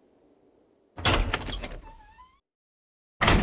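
A heavy metal door swings open.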